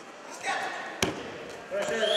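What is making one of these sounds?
A wrestler's body thuds onto a mat.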